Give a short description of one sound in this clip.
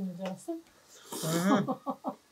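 Someone loudly slurps noodles.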